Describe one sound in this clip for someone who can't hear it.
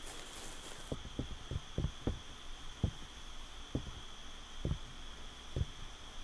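Footsteps thud on wooden stairs and boards.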